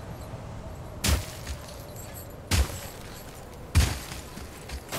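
Heavy footsteps thud and land hard on frozen ground.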